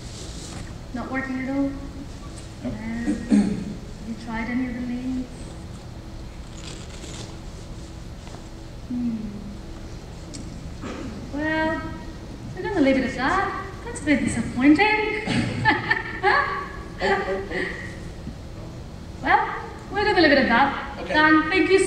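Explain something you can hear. A man speaks into a microphone, heard through loudspeakers in a large echoing hall.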